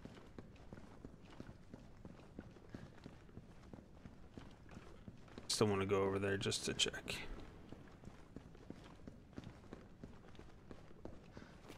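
Footsteps tread on a hard floor indoors.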